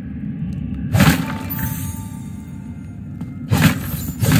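A sudden loud magical whoosh bursts out.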